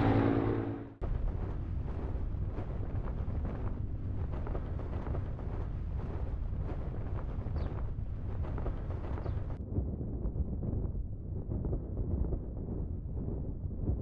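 Wind rushes past steadily.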